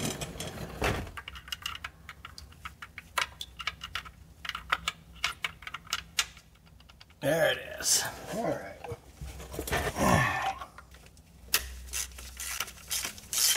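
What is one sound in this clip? A ratchet wrench clicks rapidly as a bolt is turned.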